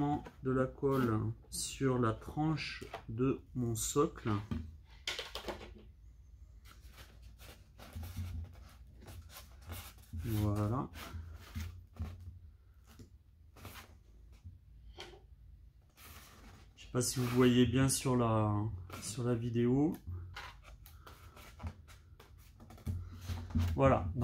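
Stiff foam board rubs and creaks under hands.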